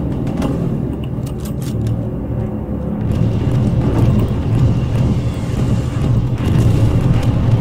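Wind howls in a snowstorm.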